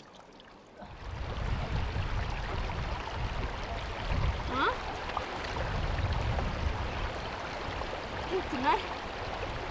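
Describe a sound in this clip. Water splashes as hands rub and rinse in a stream.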